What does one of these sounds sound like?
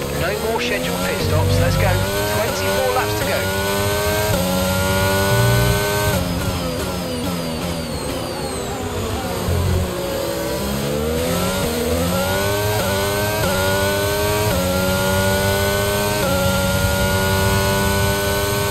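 A racing car engine screams, climbing through the gears, dropping as it slows, then revving up again.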